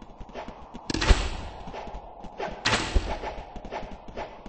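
Explosions boom in short bursts.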